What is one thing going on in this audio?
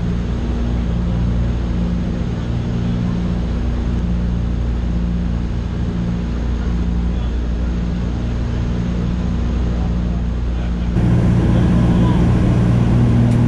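Aircraft engines drone loudly and steadily, heard from inside the cabin.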